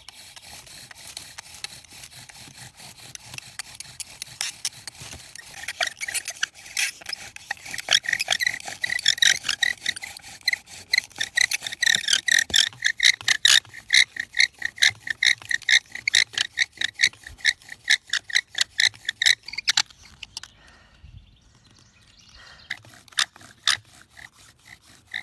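A wooden bow drill squeaks and creaks in a quick steady rhythm.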